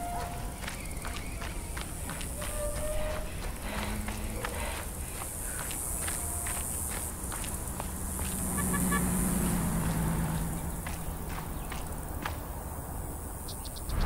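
Footsteps crunch on dry ground at a steady walking pace.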